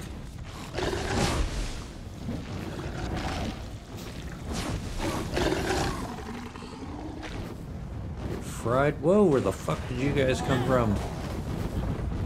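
Blades slash and thud against a monster in quick, heavy blows.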